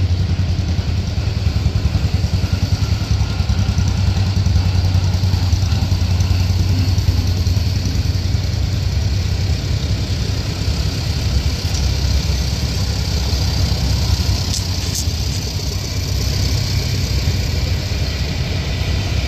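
Old tractor engines chug and putter as they drive past, one after another.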